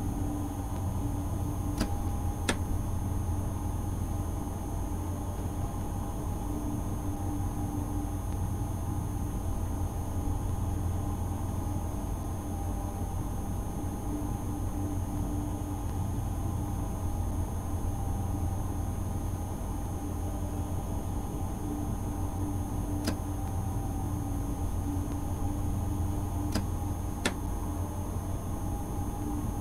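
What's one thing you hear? An electric train hums and rumbles steadily along the rails.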